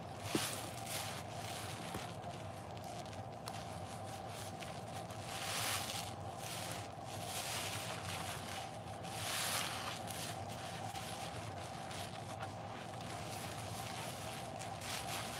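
A soapy sponge is squeezed, with wet squelching and fizzing foam.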